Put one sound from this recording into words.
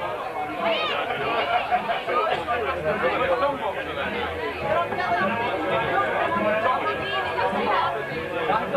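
A crowd of men and women chatter loudly close by.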